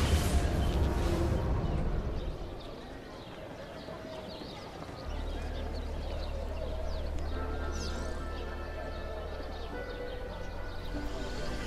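Footsteps walk over stone paving.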